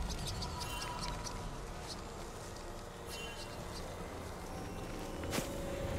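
Quick magical hits and zaps strike a large creature again and again.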